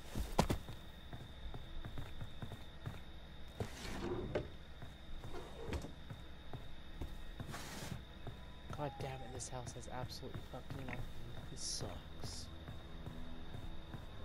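Footsteps tread on a creaking wooden floor.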